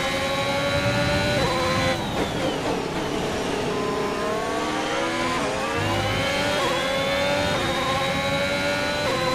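A racing car engine screams at high revs, dropping in pitch as it brakes and downshifts, then climbing again as it accelerates.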